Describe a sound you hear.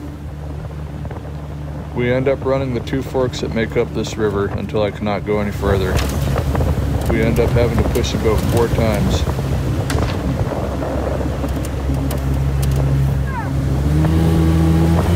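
Water rushes and splashes under a moving boat.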